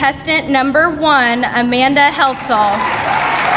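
A woman announces through a loudspeaker in a large hall.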